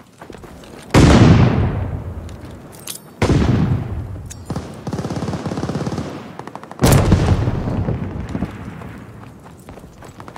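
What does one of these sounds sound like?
Loud explosions boom and slowly fade.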